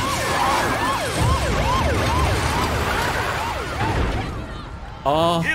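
A vehicle crashes and metal scrapes loudly.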